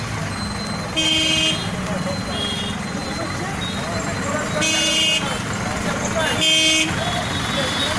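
Vehicle horns honk loudly in short blasts.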